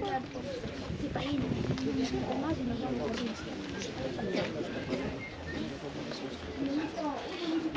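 A crowd of men and women talk and murmur nearby outdoors.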